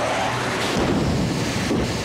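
A truck crashes and tips over with a loud crunch of metal.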